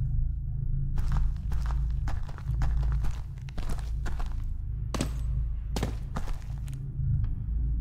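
Fists thump against a wooden barrel.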